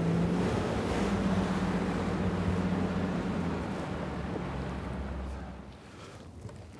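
Water churns and splashes against a boat.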